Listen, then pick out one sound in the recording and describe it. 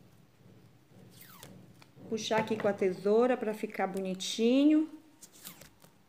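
Scissors snip through a ribbon.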